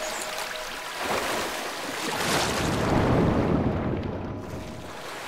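Water splashes and swirls as a figure swims through it.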